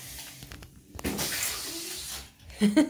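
Water splashes as something drops into a tub.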